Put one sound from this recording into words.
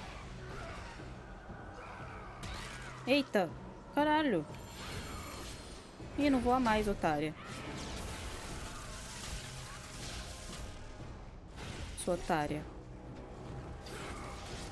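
Game combat sounds clash and whoosh throughout.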